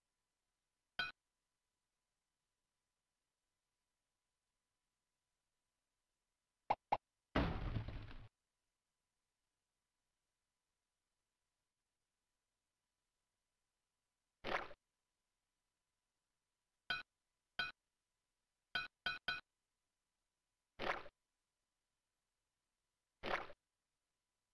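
Short electronic game sound effects blip and chime now and then, with silence between them.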